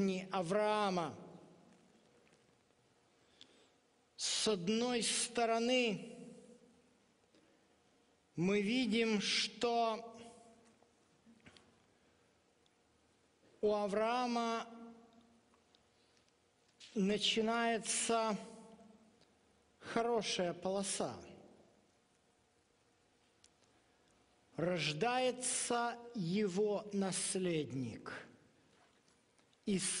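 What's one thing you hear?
A man speaks calmly through a microphone, in short bursts with pauses between.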